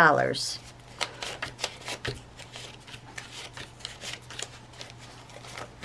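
Paper banknotes rustle and flick as they are counted by hand.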